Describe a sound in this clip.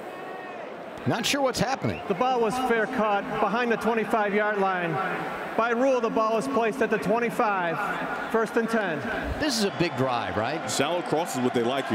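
A man announces through a stadium loudspeaker, echoing widely.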